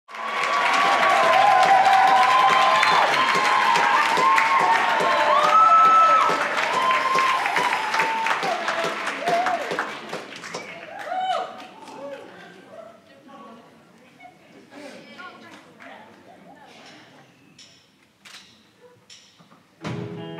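An audience applauds, and the clapping slowly fades out.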